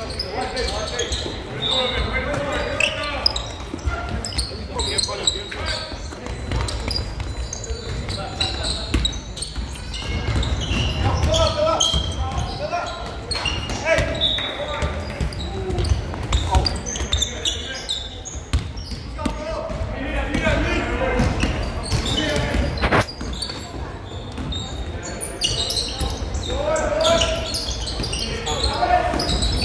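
A crowd murmurs and chatters in the echoing hall.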